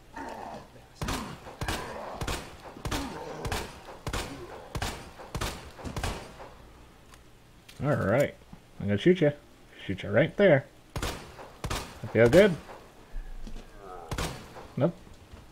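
A handgun fires repeated loud shots in an echoing corridor.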